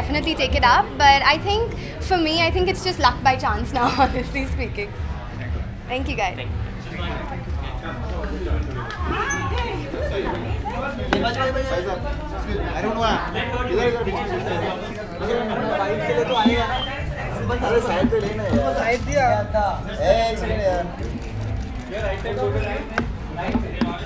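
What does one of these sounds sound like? A crowd of people chatter and call out in the background.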